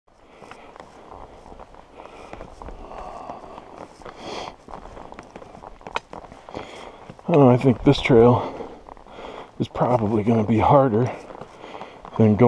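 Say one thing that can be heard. Footsteps crunch on a rocky dirt trail.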